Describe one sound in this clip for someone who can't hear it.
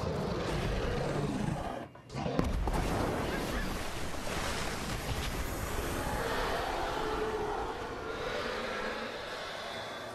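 Smoke bursts out with a loud hiss.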